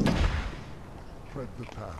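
A plasma rifle fires a crackling bolt.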